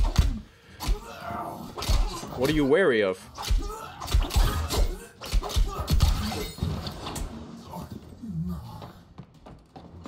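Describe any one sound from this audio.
Swords clash and thud in a close fight.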